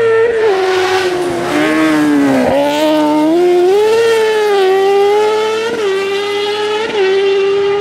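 A racing engine roars loudly, revving up and dropping as it shifts gears.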